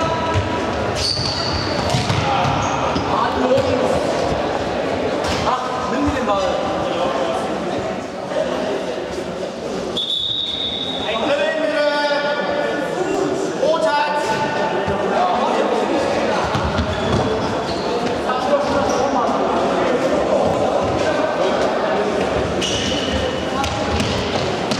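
Young players shout and call out across a large echoing hall.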